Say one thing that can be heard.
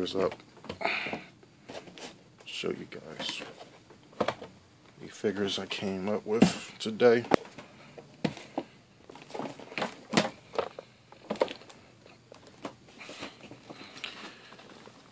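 Plastic packaging crinkles and clicks as it is handled.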